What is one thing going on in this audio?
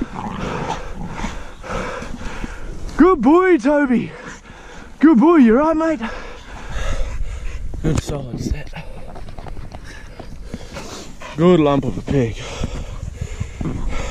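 Dry grass rustles as animals scuffle close by.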